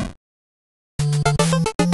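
A short chiptune jingle plays.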